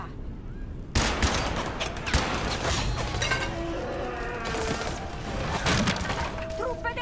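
Gunfire and blasts crack in quick bursts.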